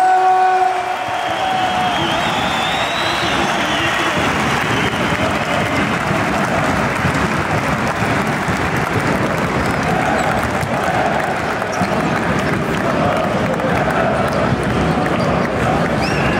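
A large crowd claps and cheers in a big echoing hall.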